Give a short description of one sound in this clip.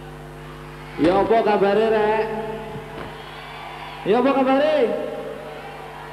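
A man sings loudly into a microphone in short, wavering phrases.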